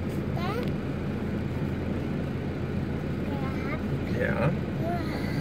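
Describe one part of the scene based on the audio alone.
A toddler babbles and squeals in short high bursts close by.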